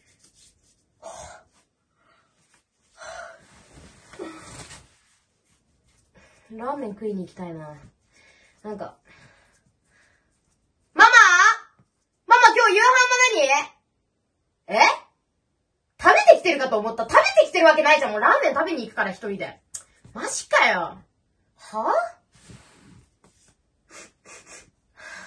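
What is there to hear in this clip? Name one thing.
A young woman talks close by with animation, shifting between whining and loud exclaiming.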